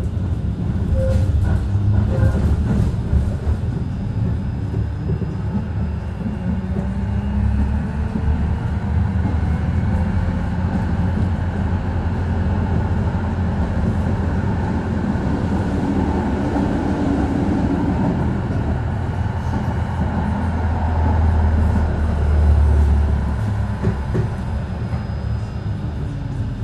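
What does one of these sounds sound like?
A tram's motor hums low and steady as it rolls along.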